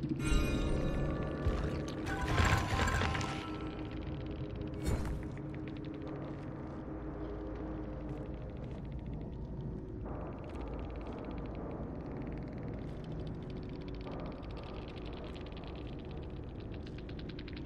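Wind blows softly and steadily through grass.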